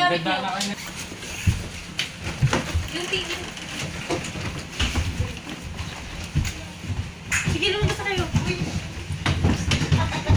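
Footsteps shuffle and thump on a hard floor.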